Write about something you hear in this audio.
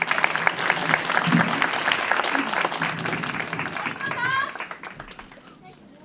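A large crowd cheers and claps in an echoing hall.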